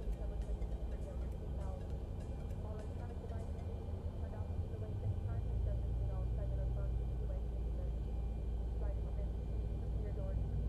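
A jet engine hums steadily at low pitch.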